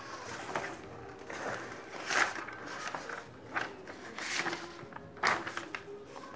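Paper pages rustle and flip close by.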